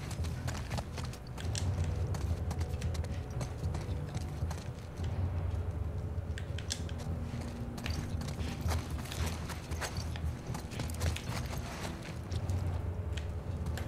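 Footsteps tread on a hard floor and stairs.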